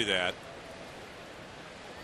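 A large crowd murmurs steadily in the distance.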